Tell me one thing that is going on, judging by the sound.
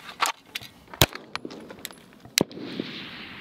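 A pistol fires sharp shots outdoors.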